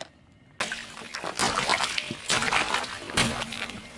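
Water balloons burst under a car tyre.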